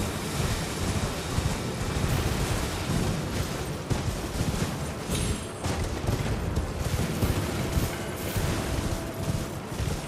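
Horse hooves thud on soft ground.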